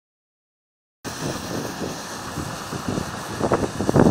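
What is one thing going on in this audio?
A tractor engine idles nearby.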